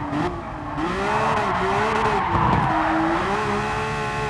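Tyres squeal through a corner.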